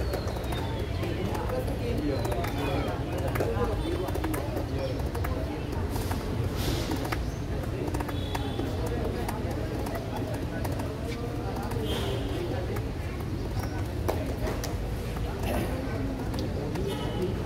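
A sepak takraw ball is kicked with sharp thuds.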